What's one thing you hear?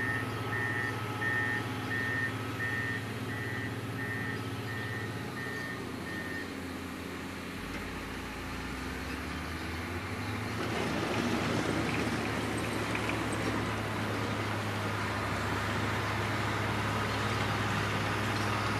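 A road grader's diesel engine rumbles steadily in the distance.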